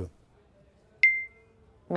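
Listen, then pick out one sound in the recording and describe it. A computer notification pings.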